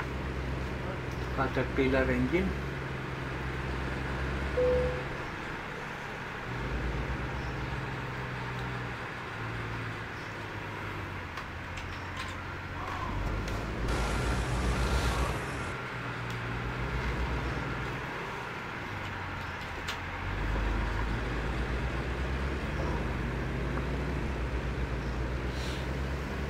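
A truck engine idles with a low, steady rumble that swells now and then.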